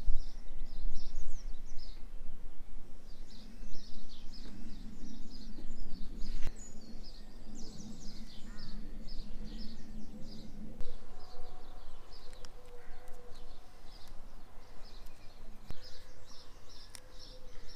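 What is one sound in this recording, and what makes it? A sticker is peeled and pressed onto a smooth surface with soft rubbing and crackling.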